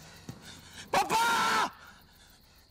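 A man lets out a short, strained yell.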